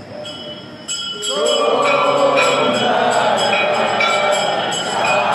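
A crowd of women sings loudly together close by.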